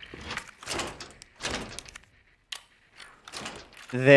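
A key turns in a door lock with a metallic click.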